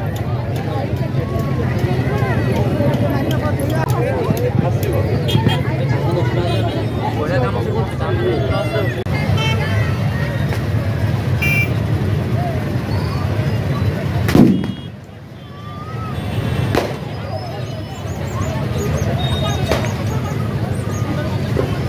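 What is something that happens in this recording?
A crowd of people chatter all around outdoors.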